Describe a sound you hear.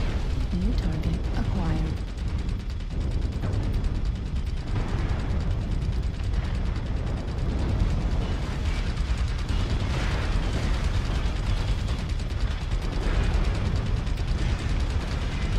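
A deep mechanical rumble goes on throughout.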